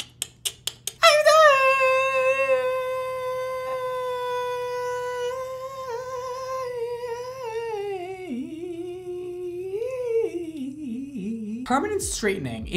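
A young man sings a long, held note that wavers and slides down at the end.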